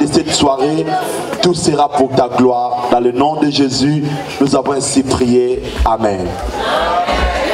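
A man speaks with feeling through a microphone and loudspeakers in an echoing hall.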